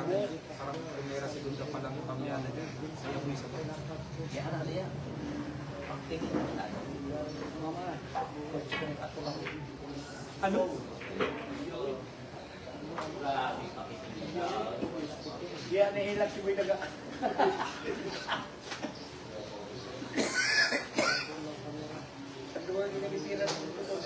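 Men chatter and talk nearby.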